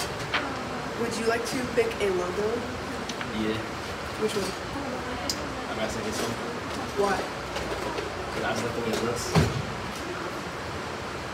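A teenage boy speaks into a microphone, close by.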